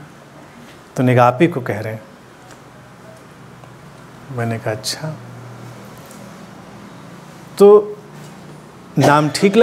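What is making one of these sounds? A middle-aged man speaks calmly and warmly into a close microphone, in short phrases with pauses.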